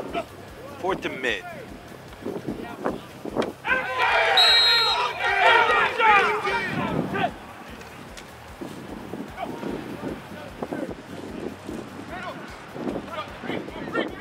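Young men call out to each other across the field.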